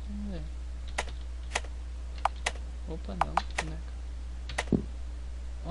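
Short electronic blips sound as game menu choices are made.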